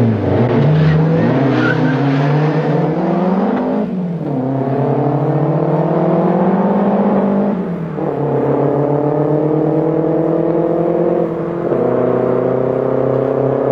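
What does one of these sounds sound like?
Car engines roar as they accelerate hard, rising in pitch and dropping with each gear change.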